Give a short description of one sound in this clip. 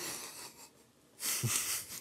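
A man gulps a drink from a glass.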